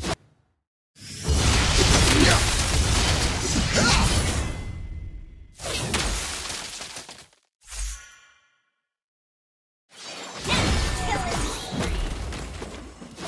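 Game sword slashes and magic blasts clash in loud bursts.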